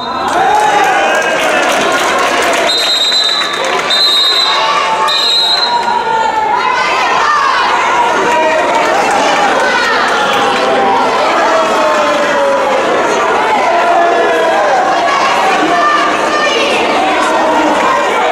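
Players shout and call to each other in a large echoing hall.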